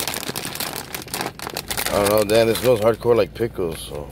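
A snack bag is torn open.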